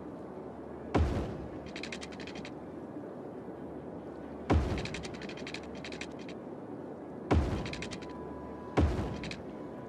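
Deep thuds sound each time a road is placed in a game.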